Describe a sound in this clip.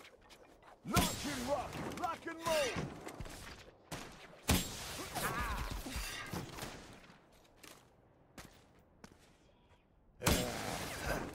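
A rocket launcher fires with a loud, booming blast.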